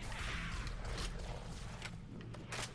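A gun butt strikes with a sharp thud.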